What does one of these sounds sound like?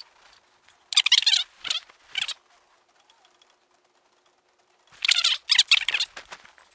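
A wrench clinks against a steel axle housing.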